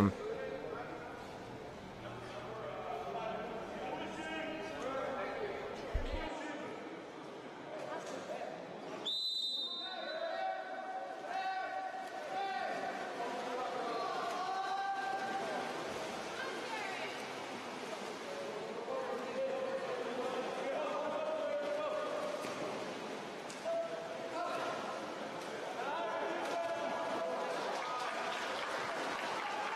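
Water splashes as swimmers thrash and kick in a pool.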